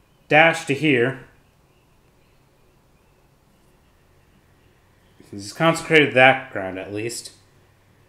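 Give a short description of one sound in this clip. A small plastic piece is set down on a table with a soft tap.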